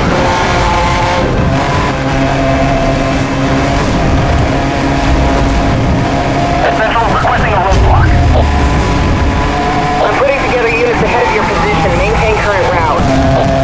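Tyres skid and crunch over gravel.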